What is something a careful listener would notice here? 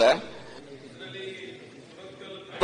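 A man reads out quietly into a microphone.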